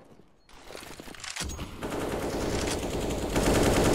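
Rapid gunfire cracks in bursts.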